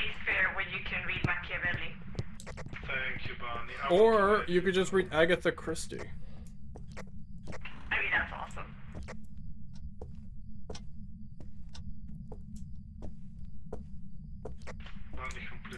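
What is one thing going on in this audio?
Footsteps thud slowly on creaking wooden floorboards.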